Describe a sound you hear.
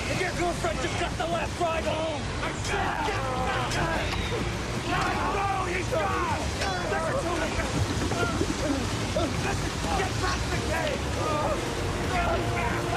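Men shout and yell frantically close by.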